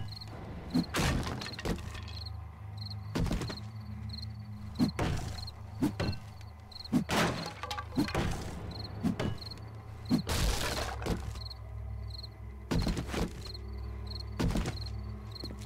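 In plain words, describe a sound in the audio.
An axe swings and thuds into wooden crates.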